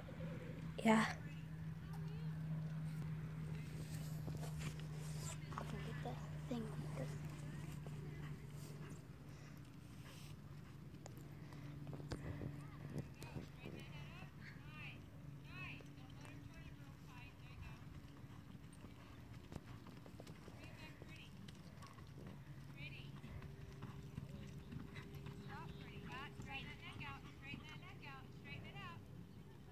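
A horse's hooves thud on soft dirt at a lope.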